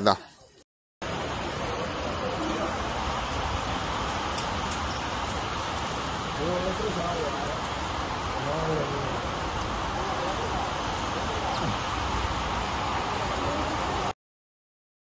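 Water rushes and splashes across a floor.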